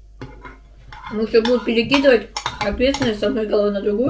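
A spoon scrapes and clinks against a bowl.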